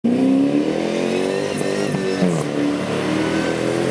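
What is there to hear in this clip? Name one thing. Muddy water splashes under tyres.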